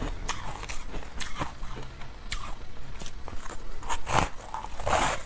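A woman chews crunchy food with loud crackling close to a microphone.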